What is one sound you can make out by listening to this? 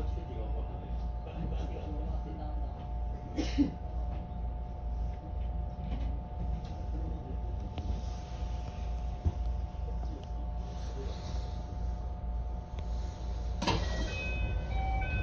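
A train's electric motor hums steadily.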